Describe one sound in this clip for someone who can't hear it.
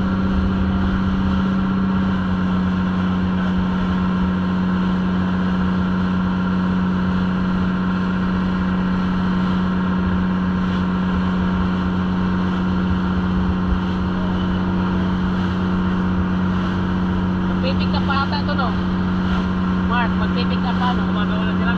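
Water splashes and rushes in the wake of a boat.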